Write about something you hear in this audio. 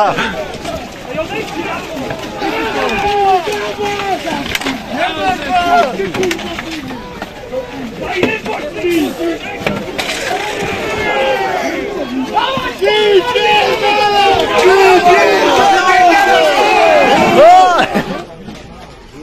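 A crowd of men shouts and jeers loudly outdoors.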